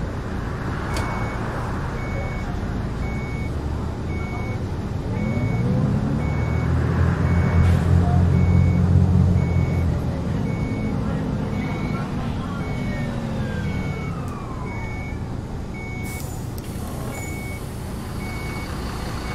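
A bus engine hums steadily and rises in pitch as it speeds up, then winds down.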